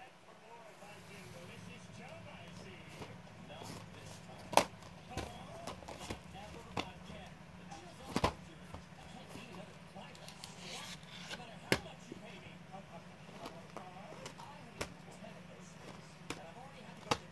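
A plastic disc case taps and rattles as it is handled and set down.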